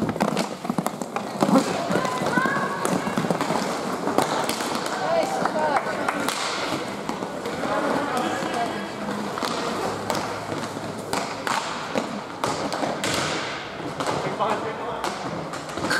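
Plastic wheels of inline skates rumble and scrape on a hard floor.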